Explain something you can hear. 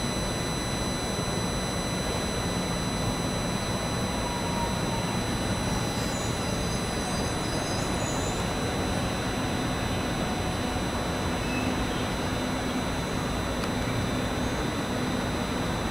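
An electric train rolls slowly into a station and stops.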